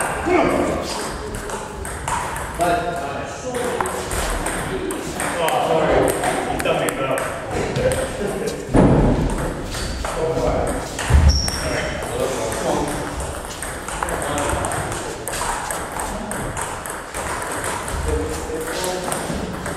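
A ping-pong ball clicks quickly back and forth on a table and paddles.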